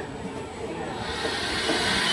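A train approaches with a rising hiss of brakes and wheels.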